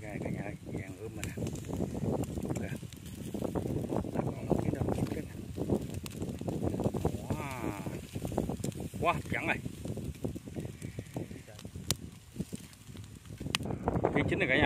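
Charcoal crackles and meat sizzles on a grill.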